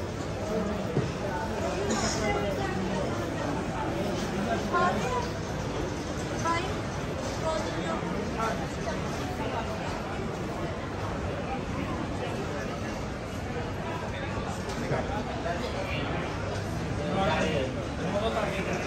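A crowd of men and women chatters nearby on a busy street.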